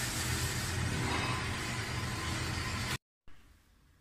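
An electric oven hums steadily.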